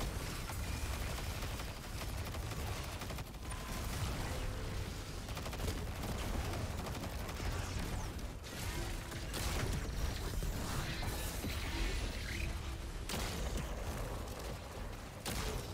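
Rapid gunfire rattles on and on.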